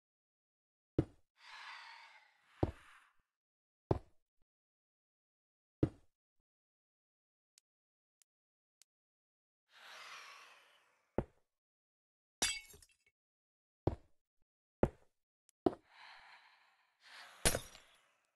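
Video game sound effects of blocks being broken knock in short bursts.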